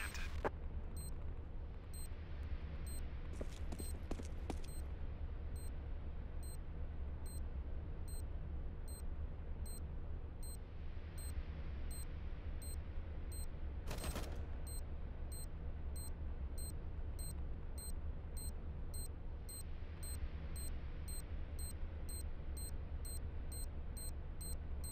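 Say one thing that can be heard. An electronic beep repeats steadily and slowly quickens.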